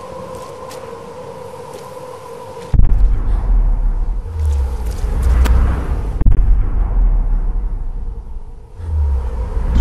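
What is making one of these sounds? A small campfire crackles.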